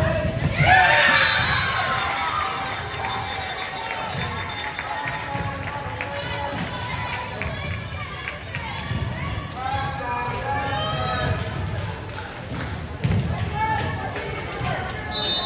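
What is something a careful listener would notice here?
Young women shout and cheer loudly in an echoing gym.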